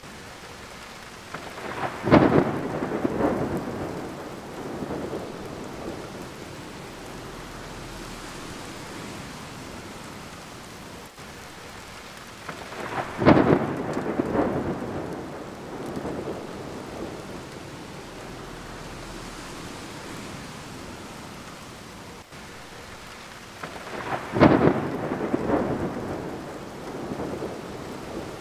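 Rain patters steadily against a window pane.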